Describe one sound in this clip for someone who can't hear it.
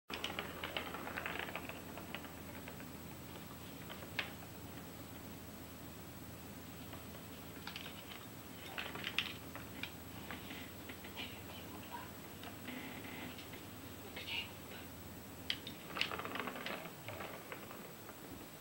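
A ball rattles and rolls around a plastic track.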